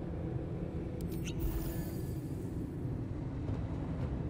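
A magical effect bursts with a bright, shimmering chime that rings out.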